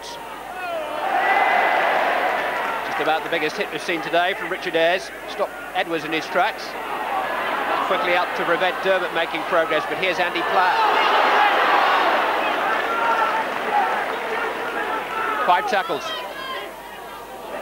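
A large crowd cheers and roars, swelling and fading.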